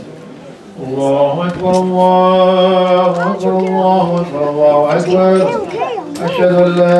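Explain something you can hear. A man chants loudly in a steady, drawn-out voice through a microphone and loudspeaker.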